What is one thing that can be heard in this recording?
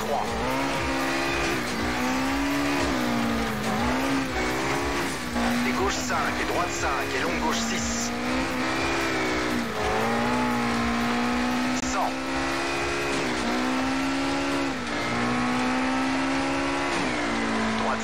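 Gravel sprays and rattles under a car's tyres.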